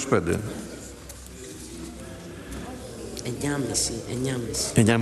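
An elderly man speaks into a microphone in a large echoing hall.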